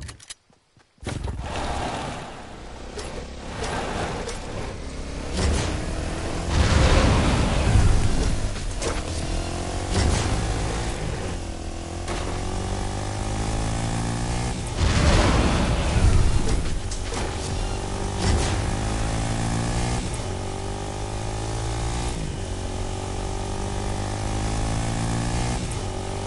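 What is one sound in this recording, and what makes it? A quad bike engine hums and revs steadily.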